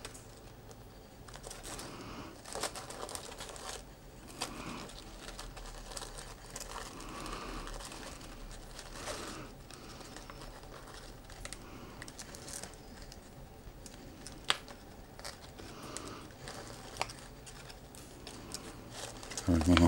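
Wrapping paper rustles and crinkles close by.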